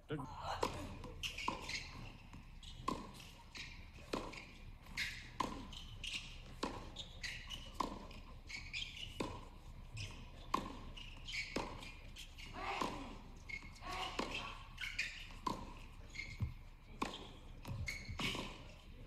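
A tennis ball is struck back and forth with sharp pops of rackets.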